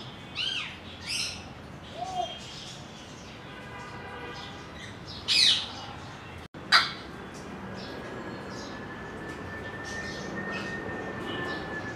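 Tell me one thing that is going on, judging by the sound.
Parrots whistle and squawk in sharp, short calls nearby.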